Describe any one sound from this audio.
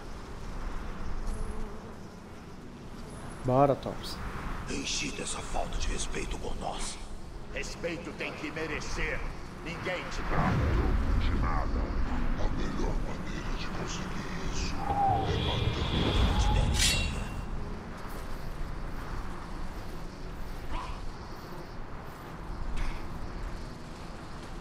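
A man talks calmly and close into a microphone.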